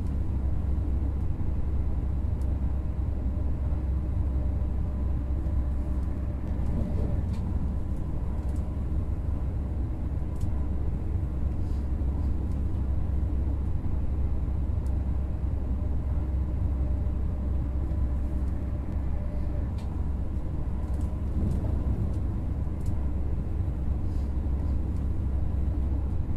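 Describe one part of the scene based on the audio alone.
Train wheels click and clatter over the rail joints.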